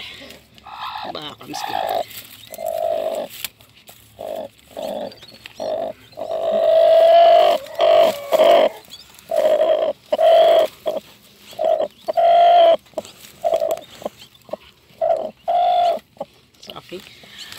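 A hen clucks and growls in short, repeated bursts close by.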